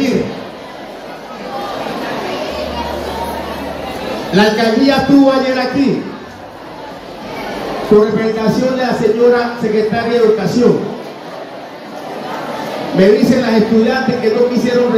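A middle-aged man speaks forcefully into a microphone through a loudspeaker, in bursts with pauses.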